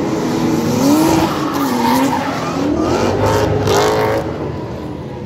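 Racing car engines roar and rev up and down as cars speed past.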